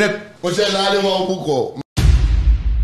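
A man laughs loudly and heartily into a microphone.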